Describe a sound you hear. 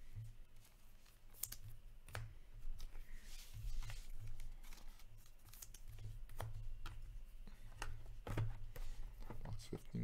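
Plastic card sleeves crinkle and click as they are handled.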